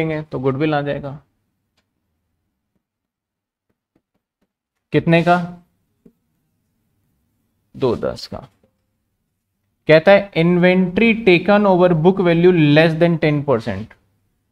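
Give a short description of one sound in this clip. A man speaks calmly into a close microphone, explaining in short bursts with pauses.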